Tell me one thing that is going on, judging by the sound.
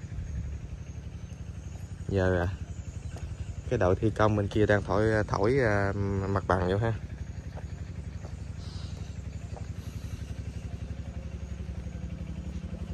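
An excavator engine idles nearby with a steady low rumble.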